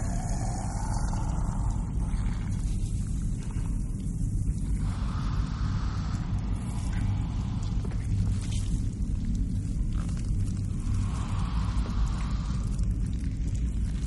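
A creature scuttles across a metal grating.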